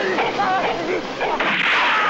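A man laughs mockingly.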